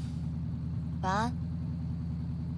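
A young woman says a short goodbye softly nearby.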